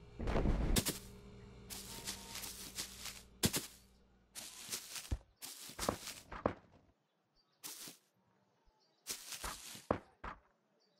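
Footsteps swish through grass.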